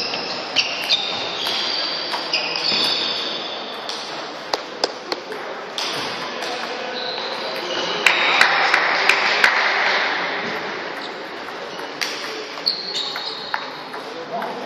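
Shoes squeak on a hard floor.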